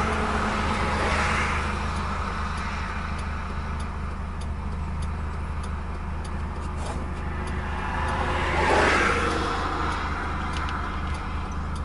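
Tyres roll on asphalt, heard from inside a moving car.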